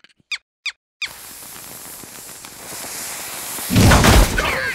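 A firework fuse hisses and fizzes.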